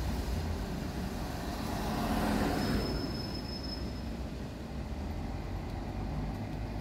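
A van drives past on a wet road.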